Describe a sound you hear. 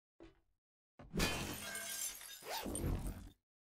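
A metal floor grate slides open.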